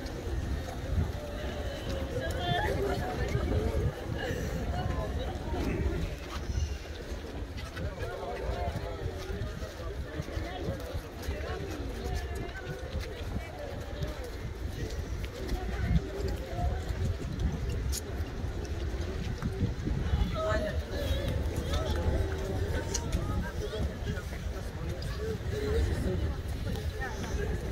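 A large crowd of men chants together outdoors.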